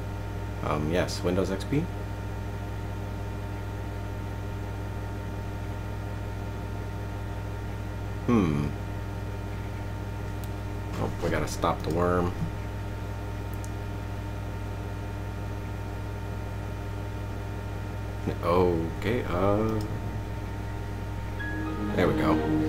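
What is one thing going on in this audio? A computer hums steadily.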